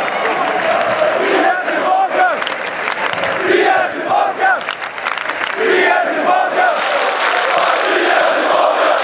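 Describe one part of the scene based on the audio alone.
A large crowd of men chants loudly in a vast echoing stadium.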